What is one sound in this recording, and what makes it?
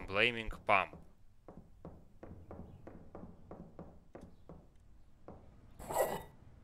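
Footsteps tread steadily across a wooden floor.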